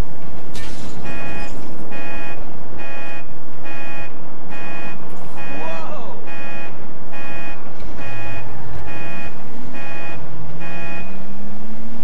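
A car's warning chime beeps repeatedly.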